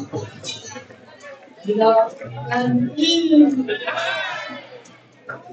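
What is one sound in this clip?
A crowd of men and women shout and cheer loudly in a large echoing hall.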